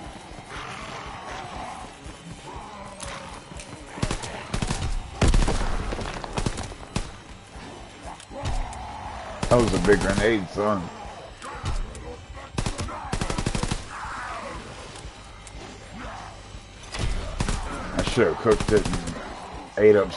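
Zombies growl and snarl.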